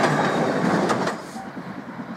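A train rumbles loudly close by.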